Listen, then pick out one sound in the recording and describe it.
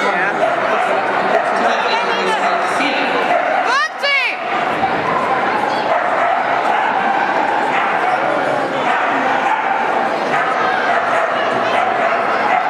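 A woman calls out commands to a running dog.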